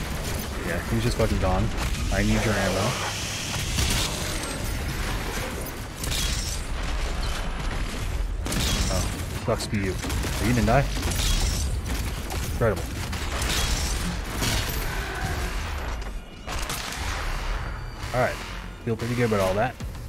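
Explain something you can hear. Monsters roar and growl.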